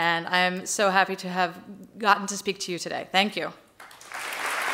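A woman speaks calmly and warmly through a microphone.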